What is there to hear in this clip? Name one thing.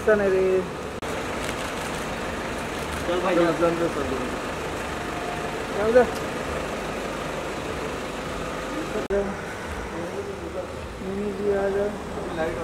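A car engine hums as a car rolls slowly past.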